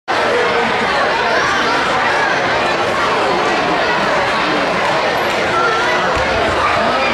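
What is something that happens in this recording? A crowd of children chatter and shout in a large echoing hall.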